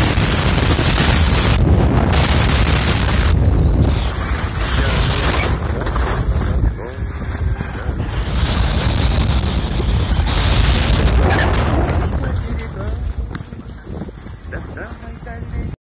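Wind roars and buffets loudly.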